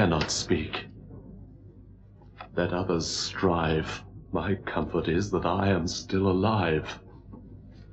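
A man speaks slowly and gravely, close by.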